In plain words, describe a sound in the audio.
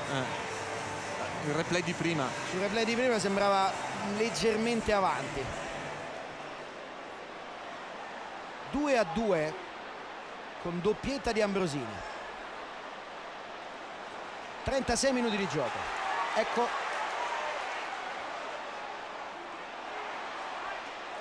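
A large stadium crowd roars and cheers steadily in the distance.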